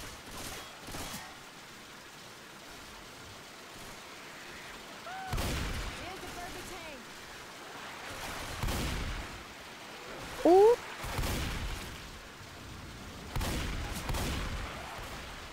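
Gunshots fire in bursts.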